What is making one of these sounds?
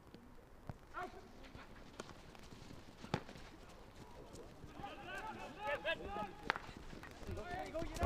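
Hockey sticks crack against a ball outdoors.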